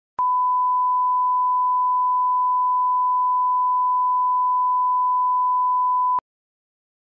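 A steady high test tone beeps without a break, then cuts off abruptly.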